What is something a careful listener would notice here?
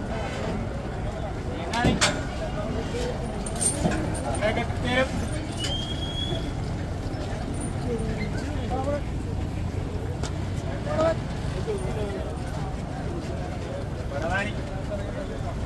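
A crowd of men chatter outdoors nearby.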